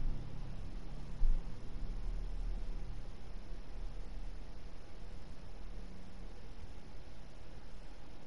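A fire crackles softly nearby.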